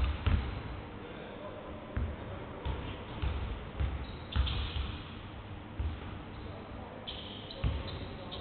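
A basketball bounces on a hardwood floor with thuds that echo in a large hall.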